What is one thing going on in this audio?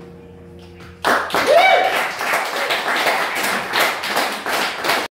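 A slide guitar plays loudly through an amplifier, its notes gliding up and down.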